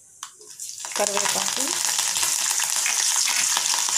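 Leaves crackle and spit as they drop into hot oil.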